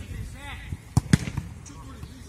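A football is kicked hard.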